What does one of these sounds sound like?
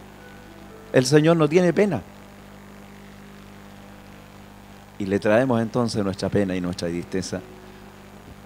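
A middle-aged man speaks with animation into a microphone, heard through a loudspeaker in a large echoing room.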